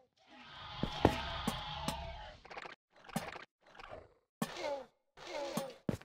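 Game blocks are placed with short, soft clicks.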